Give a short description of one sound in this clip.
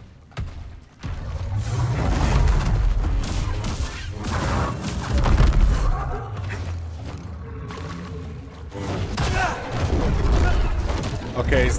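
Lightsabers hum and swish through the air.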